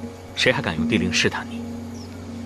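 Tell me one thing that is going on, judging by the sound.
A young man speaks in a low, cold voice.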